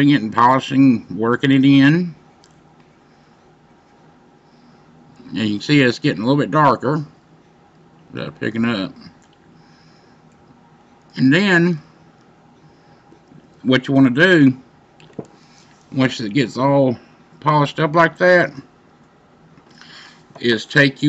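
A man talks calmly and close up, in short bursts with pauses.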